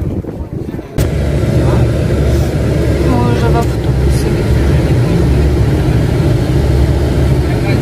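A bus engine rumbles steadily inside the vehicle.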